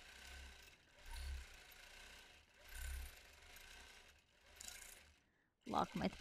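A sewing machine hums and stitches rapidly.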